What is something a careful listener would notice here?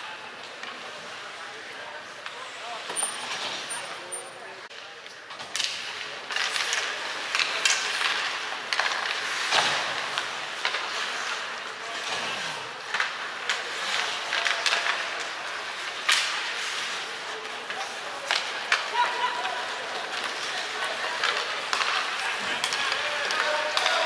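Skates scrape and hiss across the ice in a large echoing arena.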